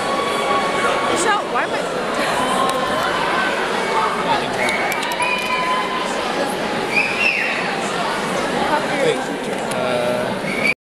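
A group of young girls sing loudly in a large echoing hall.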